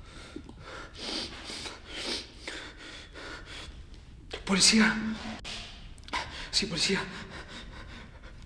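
A man speaks quietly and tensely into a phone, close by.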